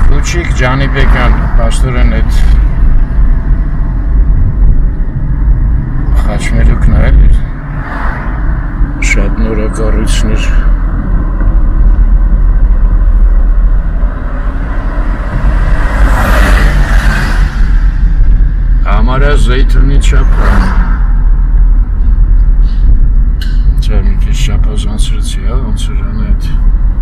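A car engine rumbles steadily.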